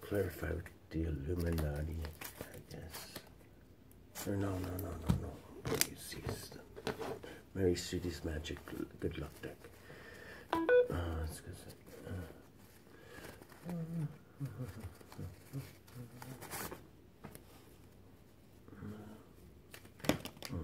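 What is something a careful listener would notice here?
Packaging crinkles in a man's hands.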